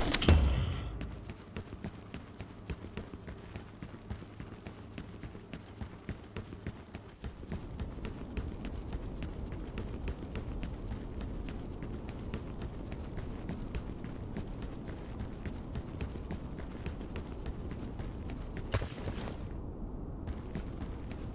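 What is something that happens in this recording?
Heavy boots thump in quick steady footsteps on a hard floor.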